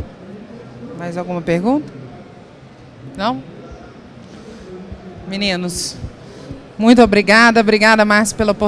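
A woman speaks with animation into a microphone through loudspeakers.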